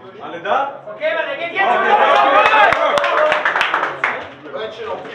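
A group of young men cheers and shouts together.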